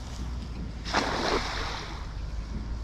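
A cast net splashes into water.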